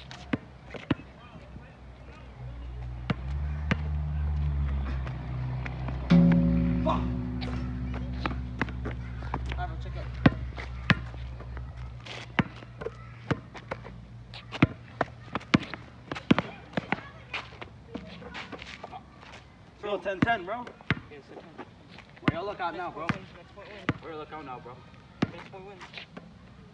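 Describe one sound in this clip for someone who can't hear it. A basketball bounces on hard pavement.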